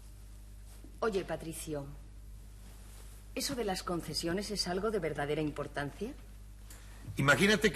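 A young woman speaks calmly and softly, close by.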